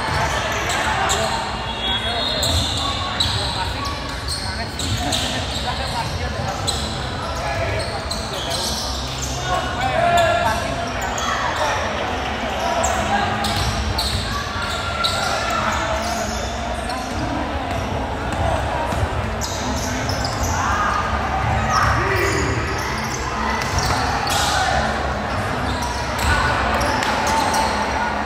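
Sneakers squeak sharply on a hardwood court, echoing in a large gym.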